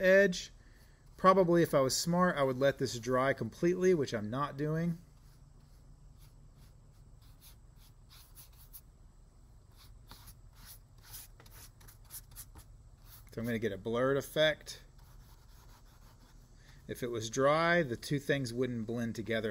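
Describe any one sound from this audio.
A paintbrush brushes softly across wet paper.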